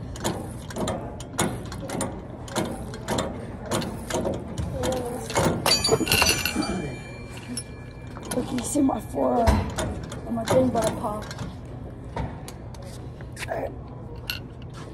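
Weight plates of a cable machine clank and click repeatedly.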